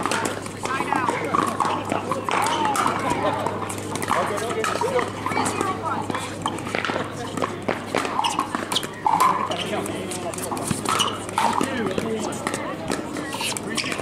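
Paddles knock hollow balls back and forth in quick sharp pops.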